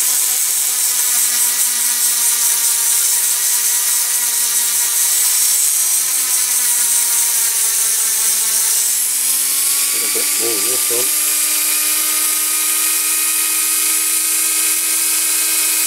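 A small rotary tool whines steadily.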